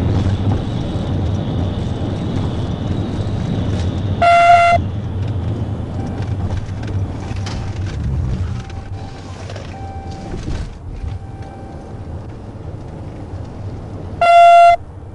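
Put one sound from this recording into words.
Tyres rumble loudly on the road as a car speeds along.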